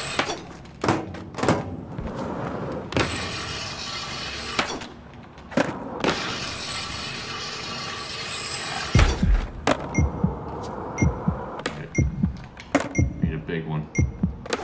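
Skateboard wheels roll and grind along rails and ramps.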